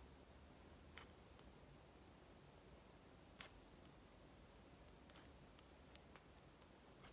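Scissors snip with quiet, sharp clicks.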